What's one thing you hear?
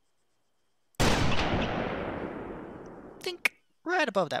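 A sniper rifle fires a single shot that echoes and slowly fades.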